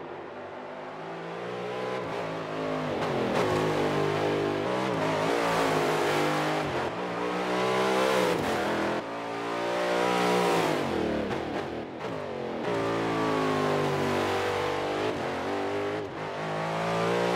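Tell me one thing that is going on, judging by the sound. A racing car engine roars at high revs, rising and falling in pitch as the car shifts gears and passes by.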